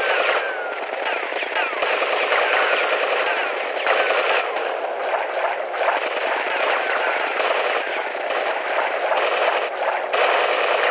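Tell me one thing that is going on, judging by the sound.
Water bubbles and gurgles steadily as a swimmer moves underwater.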